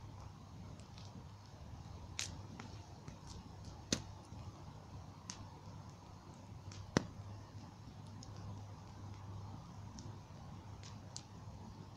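A wood bonfire crackles and pops.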